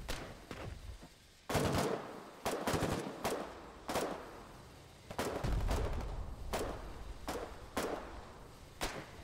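Gunshots fire one at a time, each followed by a rolling echo.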